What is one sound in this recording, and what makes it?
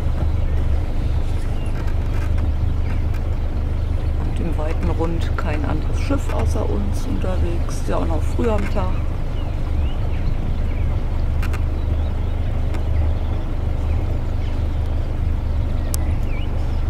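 Water washes against a moving boat's hull.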